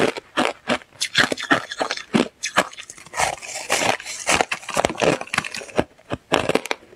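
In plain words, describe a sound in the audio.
Ice crackles and squeaks as a young woman's fingers squeeze it.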